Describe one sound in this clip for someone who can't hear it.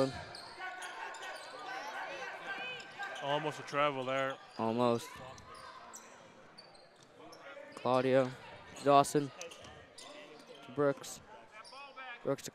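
Sneakers squeak sharply on a hard floor in an echoing gym.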